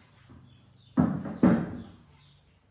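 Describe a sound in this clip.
Plastic items clatter as a woman sets them down.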